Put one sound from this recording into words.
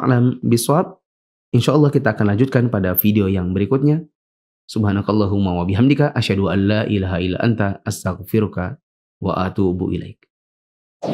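A man speaks calmly and clearly into a close microphone.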